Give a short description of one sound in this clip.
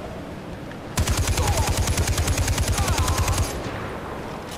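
A machine gun fires a rapid burst of shots.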